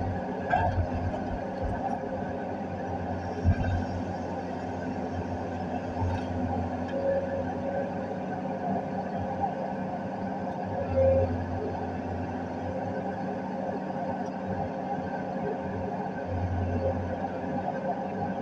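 An excavator's diesel engine rumbles steadily from inside the cab.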